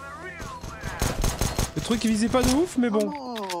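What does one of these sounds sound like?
Pistol shots crack in quick succession.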